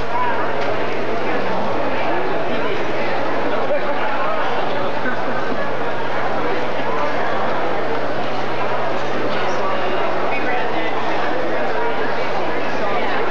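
A band plays live music in a large hall.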